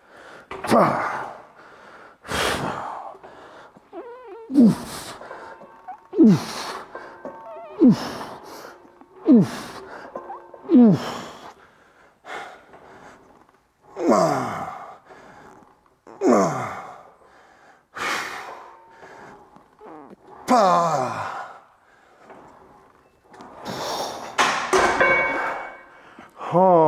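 A man groans loudly with effort, again and again.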